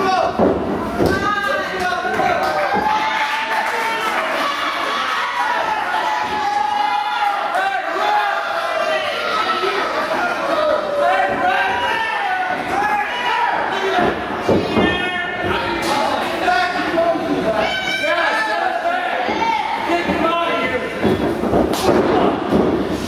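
A crowd of children and adults shouts and cheers in a large echoing hall.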